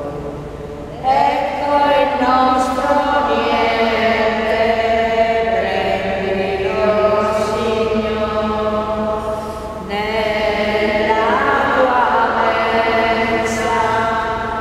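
A man chants slowly in a large echoing hall.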